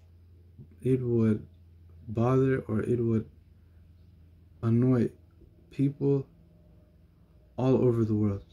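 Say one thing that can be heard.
A man speaks calmly and closely in short phrases with pauses.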